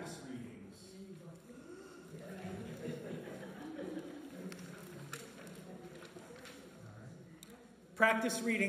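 A man talks quietly in a large echoing room.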